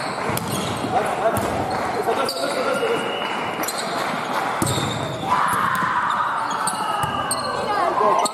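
A volleyball is struck with sharp thumps in a large echoing gym.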